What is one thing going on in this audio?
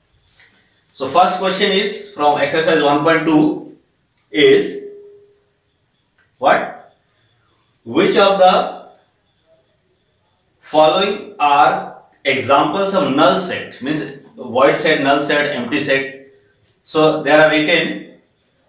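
A man speaks calmly and clearly into a microphone, pausing often.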